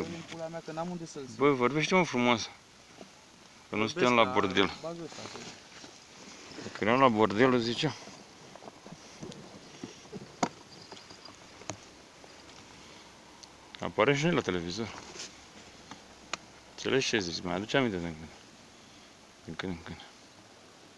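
A man speaks close by in short bursts.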